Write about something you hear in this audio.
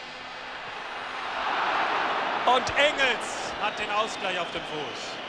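A stadium crowd roars loudly as a shot flies toward goal.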